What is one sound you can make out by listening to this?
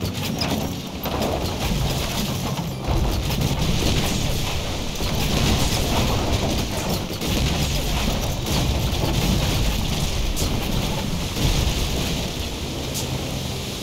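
Cannons boom repeatedly in a battle between ships.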